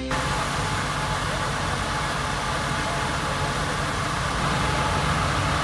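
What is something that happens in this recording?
A fire engine's motor idles steadily nearby.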